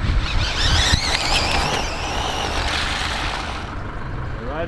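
A small electric motor of a toy car whines, rising and falling in pitch as it speeds across pavement.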